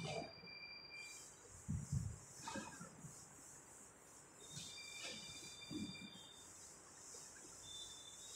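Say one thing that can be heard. A cloth rubs and swishes across a chalkboard.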